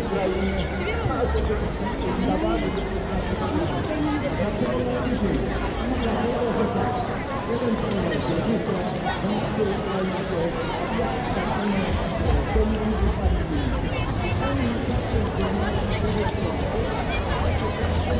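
Many people chatter and talk outdoors in a busy open space.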